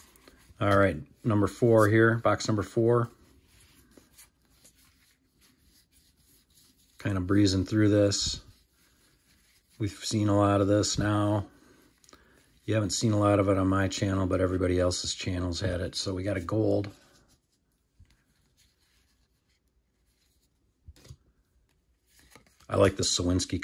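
Trading cards slide and flick against each other in a pair of hands.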